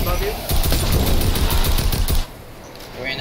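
Rapid gunfire bursts from a video game.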